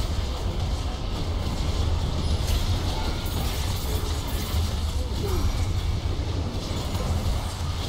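Explosions boom as a tower is struck and destroyed.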